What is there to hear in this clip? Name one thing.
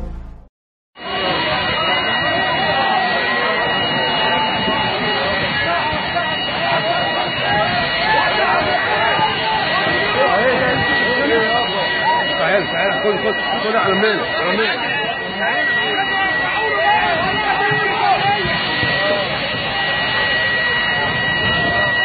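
A crowd of men shouts and calls out excitedly outdoors.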